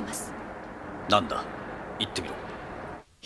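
A man answers briefly and calmly.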